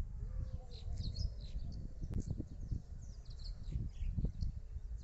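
Wind blows and rumbles against the microphone outdoors.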